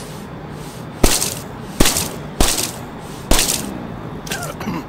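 Gunshots bang several times in quick succession.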